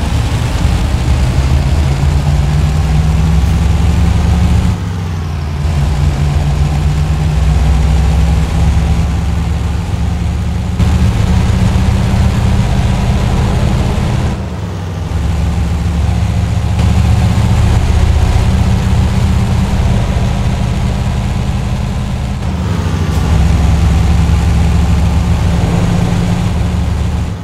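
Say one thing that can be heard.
A truck engine rumbles loudly and steadily, rising and falling in pitch as it shifts gears.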